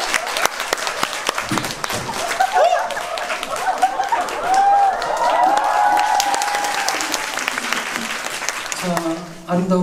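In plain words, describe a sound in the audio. An audience claps and cheers in a hall.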